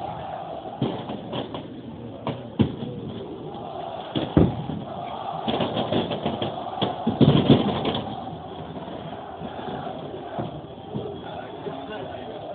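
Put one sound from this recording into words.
A large crowd cheers and chants outdoors.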